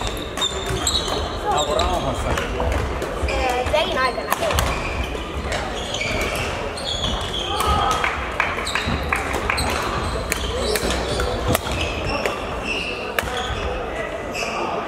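Children chatter and call out across a large echoing hall.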